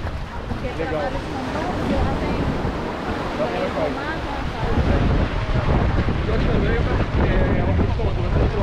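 Several adults chat and talk over one another nearby, outdoors.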